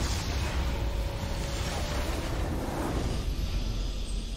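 Video game battle effects crackle and boom.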